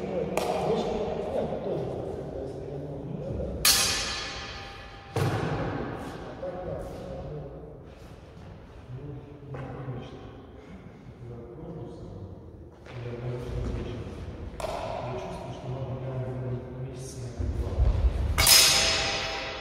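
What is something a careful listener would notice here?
Swords clash with sharp metallic rings in an echoing hall.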